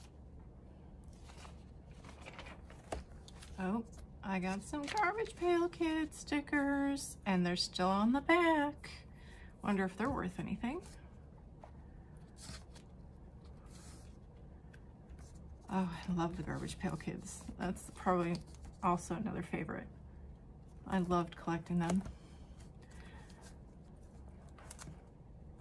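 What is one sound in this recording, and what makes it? Stiff album pages with plastic sleeves rustle and flap as they are turned.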